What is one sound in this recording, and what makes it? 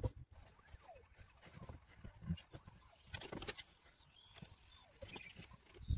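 Cables rustle and tap.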